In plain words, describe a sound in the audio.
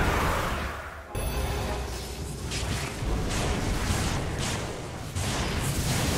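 Game battle effects clash and burst in quick succession.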